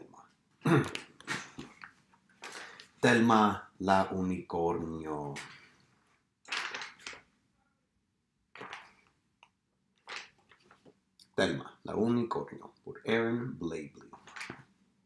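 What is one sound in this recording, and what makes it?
A man reads aloud with expression, close by.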